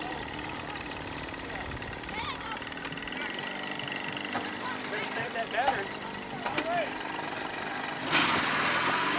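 An outboard motor drones on the water.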